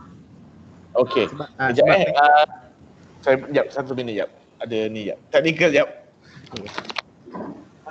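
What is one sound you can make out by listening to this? A second young man talks with animation over an online call.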